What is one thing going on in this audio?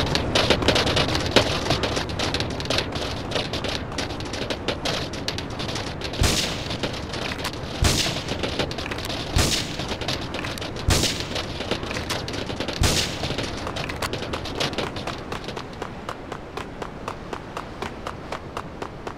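Quick footsteps run on a hard surface.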